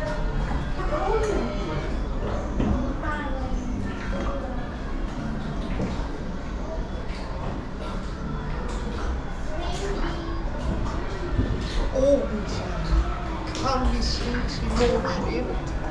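Adults talk nearby.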